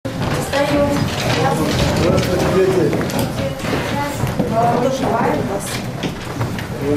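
Children murmur and chatter in a busy room.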